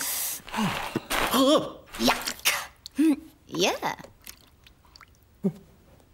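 A man mumbles and squeaks in a high voice.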